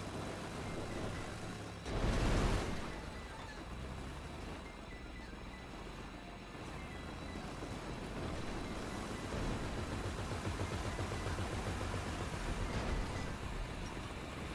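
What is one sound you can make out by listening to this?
A heavy vehicle engine rumbles as it drives.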